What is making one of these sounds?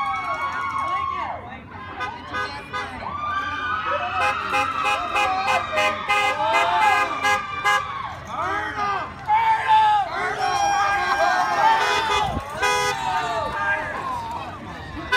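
A crowd of young people cheers and shouts outdoors.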